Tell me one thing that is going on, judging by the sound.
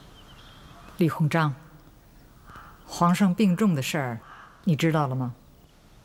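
A middle-aged woman speaks firmly and close by.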